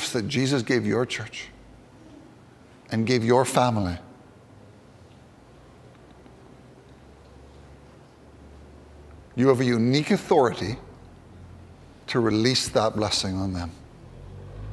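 A man speaks calmly through a microphone in short phrases, echoing in a large hall.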